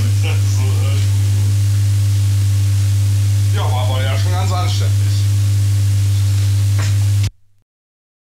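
A vinyl record plays on a turntable.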